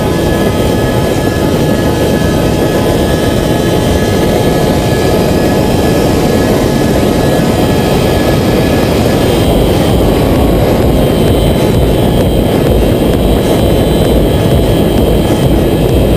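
A motorcycle engine drones steadily at speed.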